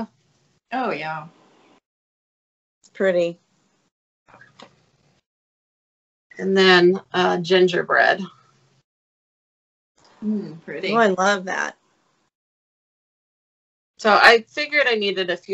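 A middle-aged woman talks with animation over an online call.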